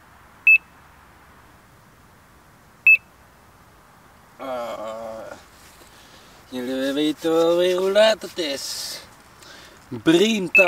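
A fishing bite alarm gives short, sharp electronic beeps.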